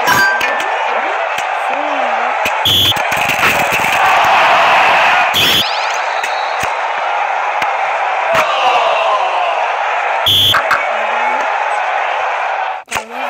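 A ball is kicked with short, thumping knocks.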